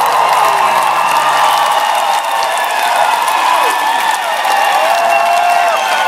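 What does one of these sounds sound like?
A man claps his hands overhead.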